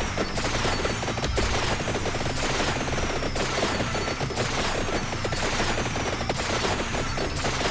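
Rapid electronic zaps and bursts from a video game crackle without pause.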